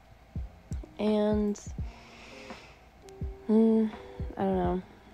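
A young woman hums short, high notes close by.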